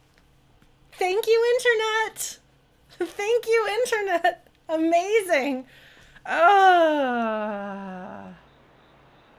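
A young woman speaks with animation close to a microphone, her voice rising and falling.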